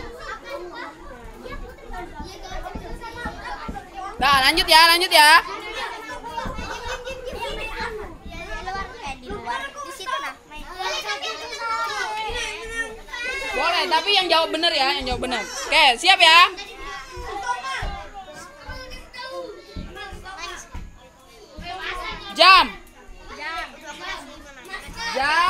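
Children talk and shout excitedly nearby.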